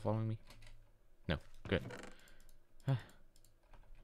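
A wooden chest creaks open in a video game.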